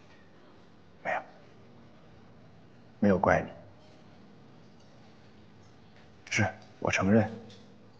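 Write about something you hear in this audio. A young man speaks quietly, with pauses.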